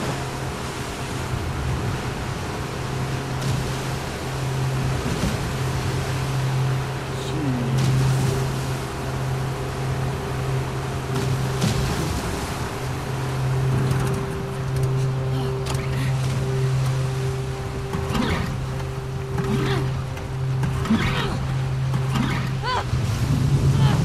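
Rough waves crash and splash around a small boat.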